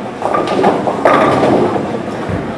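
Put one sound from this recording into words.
Bowling pins crash and clatter as they fall.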